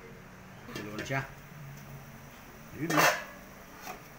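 A metal lid clanks as it is lifted off a wok.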